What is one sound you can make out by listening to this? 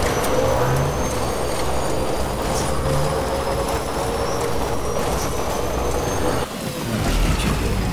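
Tyres crunch over rocky, uneven ground.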